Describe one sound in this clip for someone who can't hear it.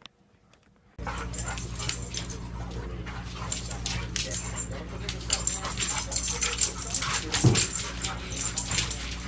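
Dogs growl and snarl as they play-fight.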